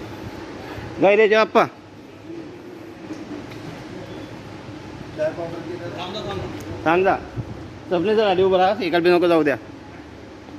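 A man speaks loudly, close by, in short bursts.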